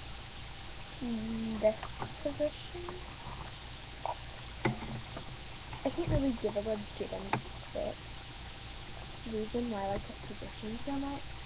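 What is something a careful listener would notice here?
A young person speaks quietly close to a microphone.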